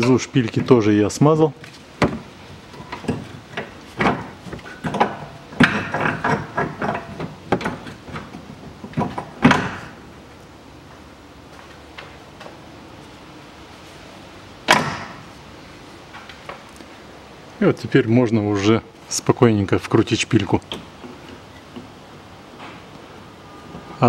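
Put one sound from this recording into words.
Metal parts clunk and knock as they are handled.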